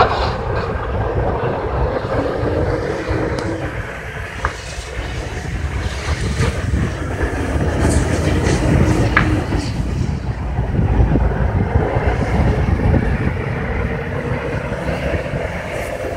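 A large fire roars and crackles nearby outdoors.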